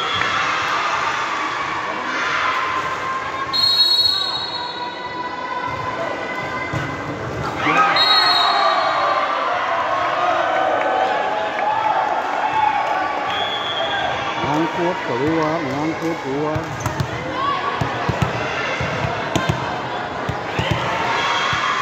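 A crowd of spectators cheers and chatters loudly in an echoing indoor hall.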